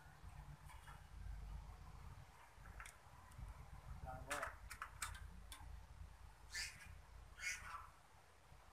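A dove hops and shuffles about in a wire cage.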